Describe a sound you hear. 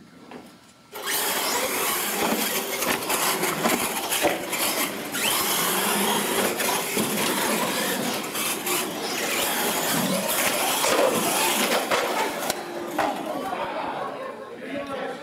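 Radio-controlled monster trucks race across a concrete floor in an echoing hall.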